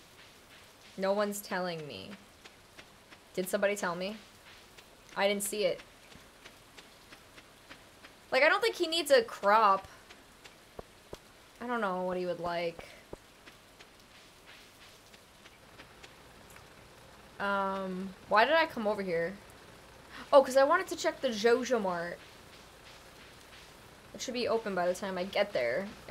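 A young woman talks calmly into a close microphone, in short bursts.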